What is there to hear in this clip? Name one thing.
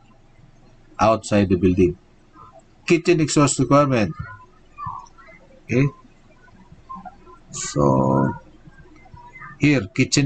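A young man speaks calmly into a microphone, as if presenting over an online call.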